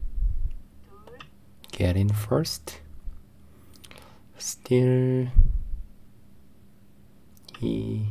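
A young man speaks with animation into a microphone, in short bursts.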